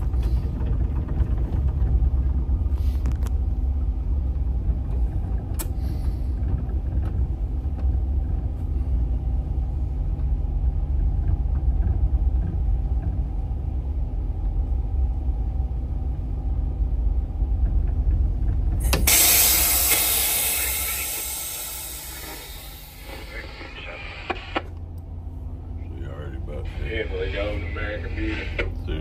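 A boat's engine rumbles low and steady.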